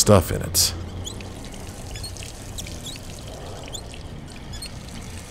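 Water trickles thinly from a tap into a sink.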